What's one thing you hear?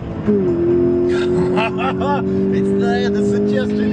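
A young man talks excitedly inside a car over the engine noise.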